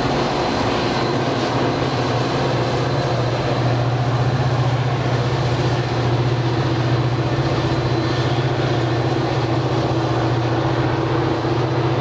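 Train wheels clatter over the rails as the train pulls away.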